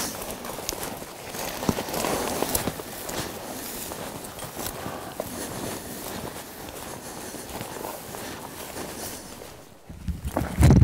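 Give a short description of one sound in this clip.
Footsteps crunch and brush through dry brush outdoors.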